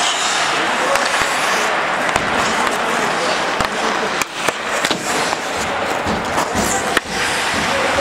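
Hockey sticks click against a puck in a large echoing hall.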